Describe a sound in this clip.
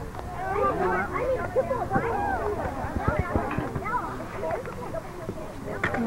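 Young children shout and call out nearby.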